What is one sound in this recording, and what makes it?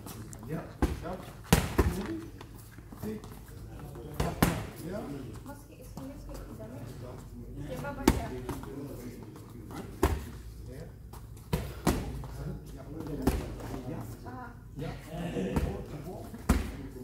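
Footsteps shuffle and squeak on a hard floor.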